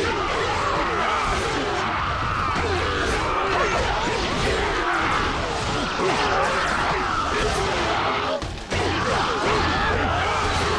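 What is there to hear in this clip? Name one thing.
Blades clash and strike rapidly in a chaotic battle.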